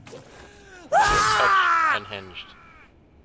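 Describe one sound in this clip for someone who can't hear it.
A loud burst of energy roars.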